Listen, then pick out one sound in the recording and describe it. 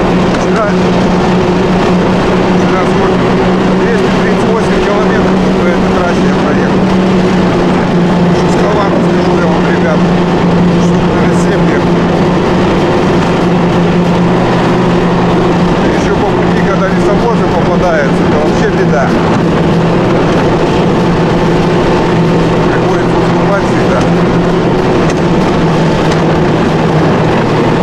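A sled scrapes and hisses steadily over packed snow.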